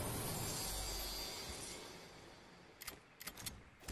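A wooden chest creaks open with a chiming sound.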